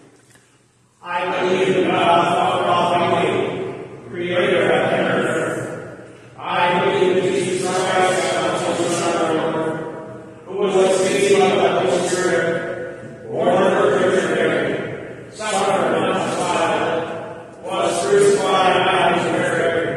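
An elderly man chants in long sung phrases in an echoing room.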